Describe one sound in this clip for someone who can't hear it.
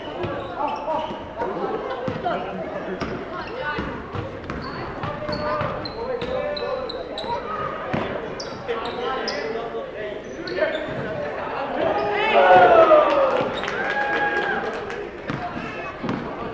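Voices of players and spectators echo through a large gym.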